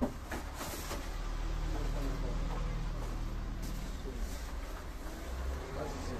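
Cardboard boxes rustle and scrape as they are handled.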